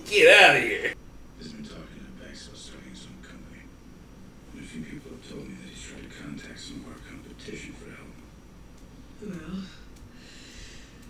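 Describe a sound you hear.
A man talks quietly, heard faintly through a loudspeaker.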